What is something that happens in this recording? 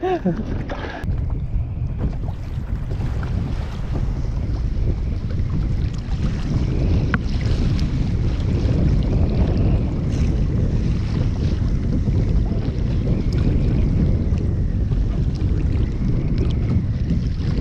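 Wind rumbles steadily outdoors on open water.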